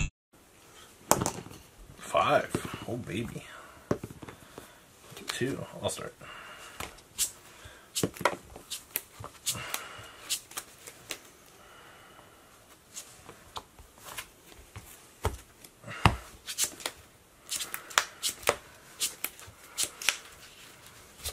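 Cards slide and tap on a play mat.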